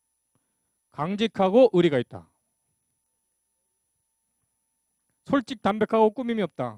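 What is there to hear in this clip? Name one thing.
A man speaks through a microphone, lecturing calmly.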